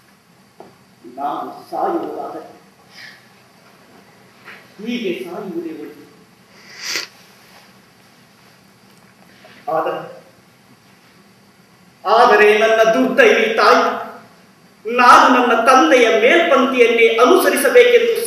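A man speaks on a stage, pausing between phrases and then talking loudly with animation, in a room with a slight echo.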